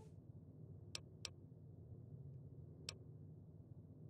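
A heavy door clicks and opens.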